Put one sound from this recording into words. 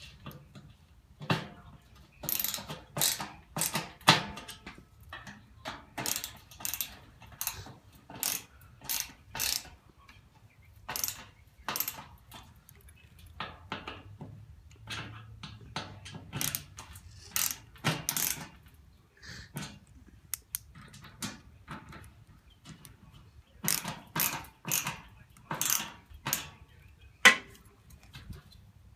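A screwdriver ratchets and clicks as a screw is turned into metal.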